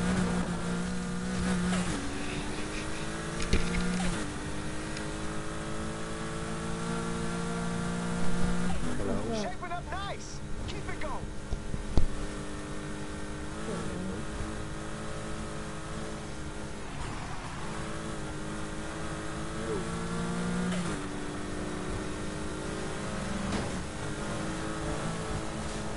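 A race car engine roars at high revs, shifting gears up and down.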